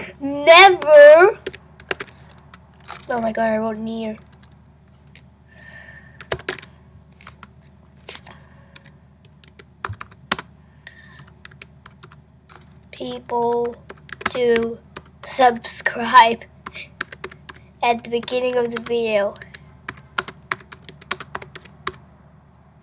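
Keys click on a keyboard as someone types.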